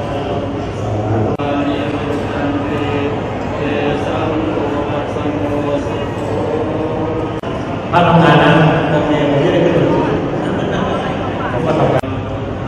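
Male monks chant together in a steady drone through microphones in a large echoing hall.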